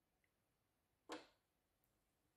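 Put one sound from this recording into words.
A button on a printer clicks.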